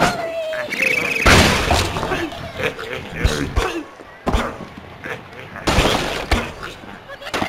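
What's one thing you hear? Wooden blocks crash and clatter as a structure collapses.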